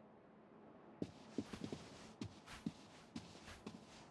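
Footsteps fall softly on carpet.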